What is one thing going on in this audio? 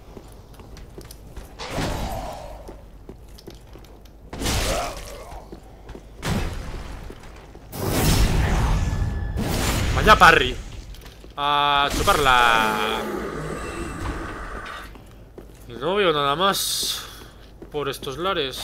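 Armour clanks with footsteps on stone.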